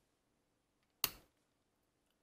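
A metal knife is set down with a light click on a small scale.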